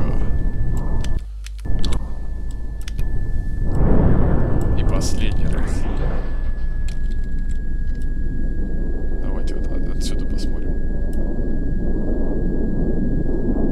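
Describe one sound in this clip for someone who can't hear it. A young man talks close into a microphone.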